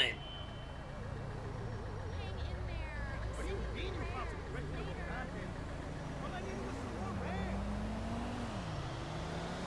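A truck engine hums as it cruises along a street.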